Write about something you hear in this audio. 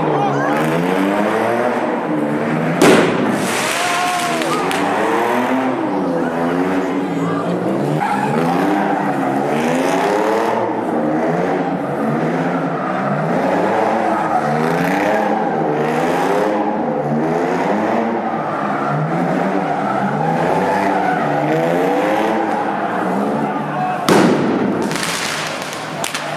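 A car engine revs loudly and repeatedly.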